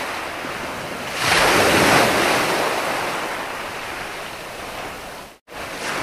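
Ocean waves break and wash up onto the shore, swelling loudly and then fading.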